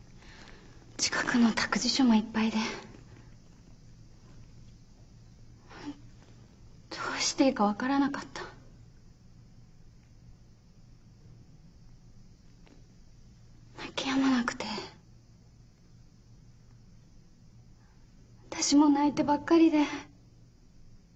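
A young woman speaks softly and tearfully, close by.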